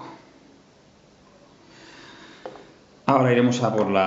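A small plastic model is set down on a wooden table with a soft tap.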